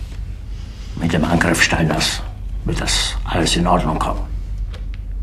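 An elderly man speaks sternly and forcefully.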